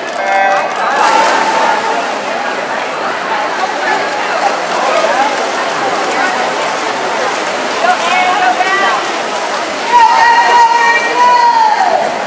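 Swimmers splash and churn the water.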